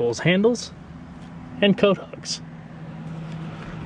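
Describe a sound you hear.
A seat belt strap slides out as a hand pulls it.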